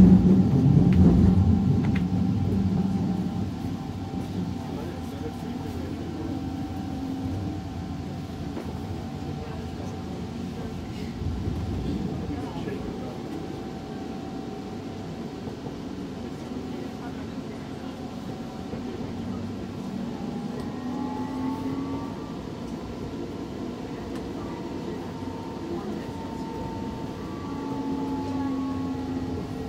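A train rumbles steadily along the tracks, heard from inside.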